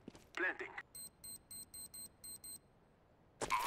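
Electronic keypad beeps sound in a quick series of short, high tones.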